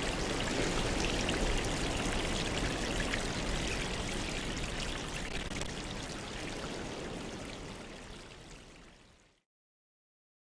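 Air bubbles stream and fizz steadily through water, then fade away.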